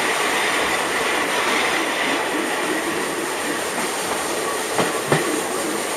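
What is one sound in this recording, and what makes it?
A steam train rumbles and clatters along the track.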